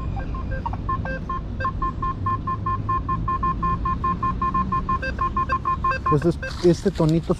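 A metal detector beeps in a steady, repeating tone.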